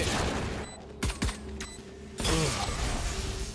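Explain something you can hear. Pistol shots crack sharply in quick bursts.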